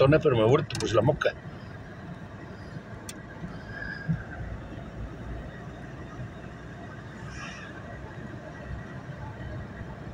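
A car drives steadily along a wet road with a low rumble.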